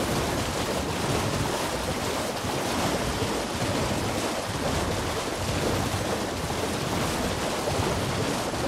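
Hooves splash quickly through shallow water.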